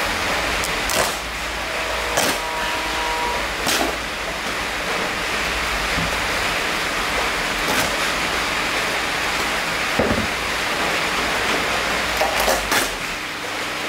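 Plastic clicks and knocks as a seat base is handled.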